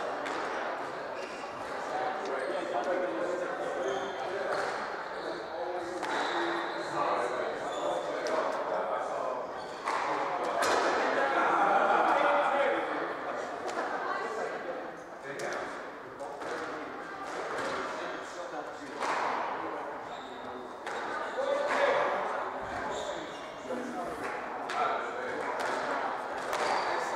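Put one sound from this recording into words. A squash ball smacks off rackets and walls in a steady back-and-forth rally, echoing in a hard room.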